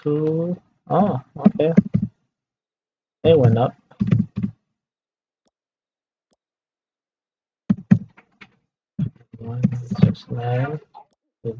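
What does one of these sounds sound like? A man speaks casually into a close microphone, in short bursts with pauses.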